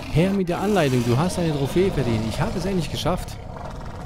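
A monster roars loudly.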